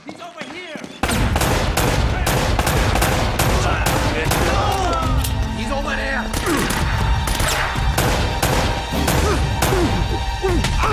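A pistol fires shot after shot, loud and echoing.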